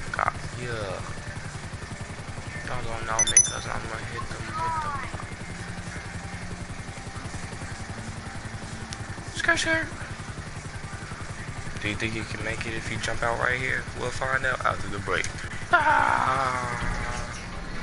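A helicopter's rotor chops steadily.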